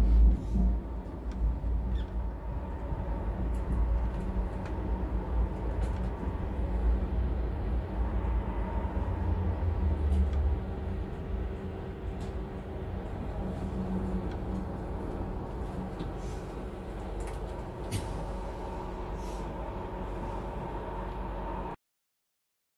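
Wheels squeal and click over the rail joints.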